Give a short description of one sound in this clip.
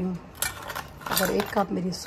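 A spoon clinks against a metal measuring cup.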